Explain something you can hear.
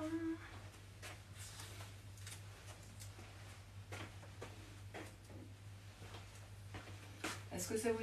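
Small objects tap and clatter on a table.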